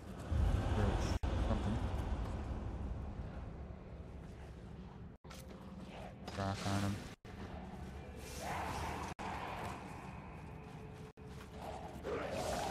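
Swords clash and clang in a game fight.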